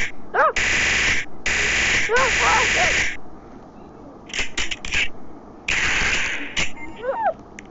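Gunshots fire in rapid bursts from a game.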